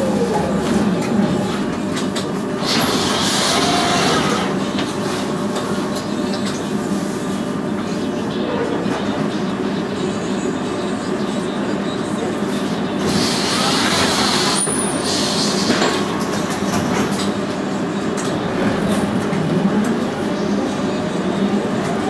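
A bus engine idles nearby with a steady hum.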